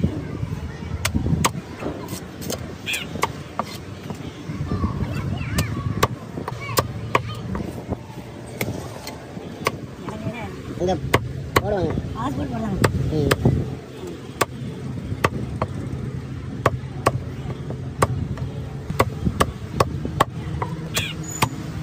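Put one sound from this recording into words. A heavy knife chops sharply into a wooden block, again and again.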